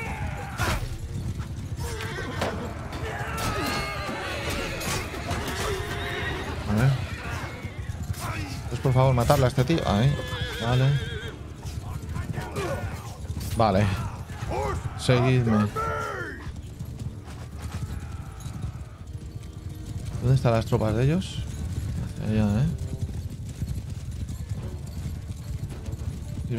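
Swords and shields clash in a noisy battle.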